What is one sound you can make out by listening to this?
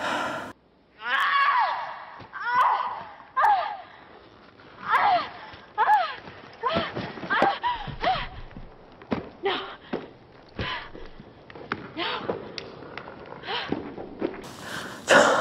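A young woman groans and cries out with strain.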